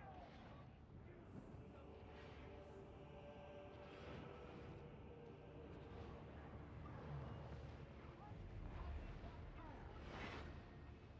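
Spells burst and crackle in a fantasy battle.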